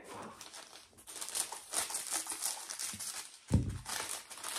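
Scissors snip through a plastic mailer.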